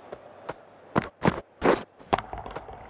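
A cricket bat strikes a leather ball.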